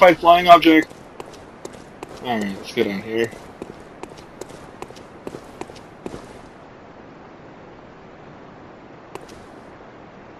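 Footsteps tap quickly on stone paving.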